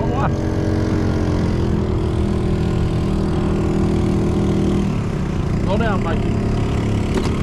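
A boat's outboard motor runs at low speed.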